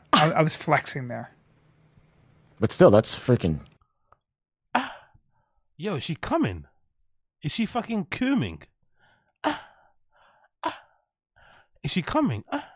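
A young man speaks with animation close to a microphone, in short bursts.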